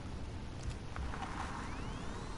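A handheld tracker device pings with a short electronic tone.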